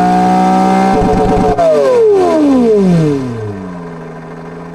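A simulated engine's revs drop sharply as the throttle is released.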